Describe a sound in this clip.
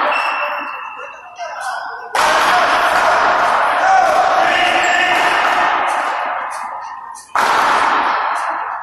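A paddle strikes a ball with a sharp echoing smack.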